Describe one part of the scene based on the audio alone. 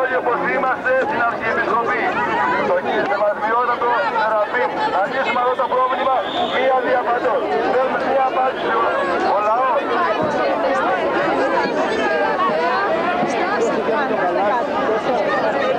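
A large crowd of men and women sings and chants loudly, close by outdoors.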